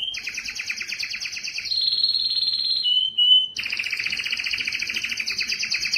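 A canary sings a loud, rapid trilling song with clear whistled notes.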